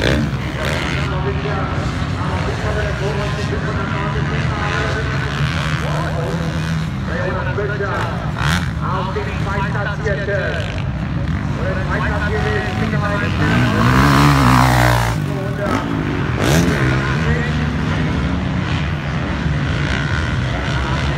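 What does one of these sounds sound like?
Motocross bike engines whine and rev in the distance.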